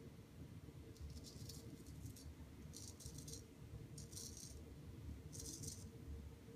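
A razor scrapes through stubble in short strokes.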